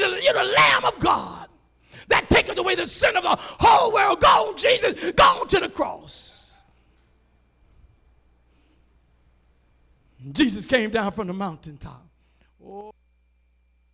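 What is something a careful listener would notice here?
An elderly man preaches with animation into a microphone, heard through loudspeakers.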